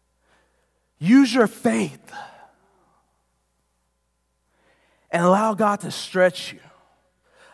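A man speaks with animation through a microphone in a large hall, pausing between phrases.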